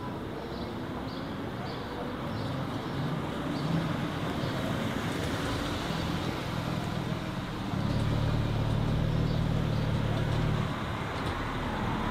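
A car engine idles and rumbles as the car rolls slowly past.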